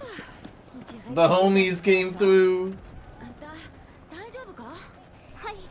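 A young woman speaks with concern, close by.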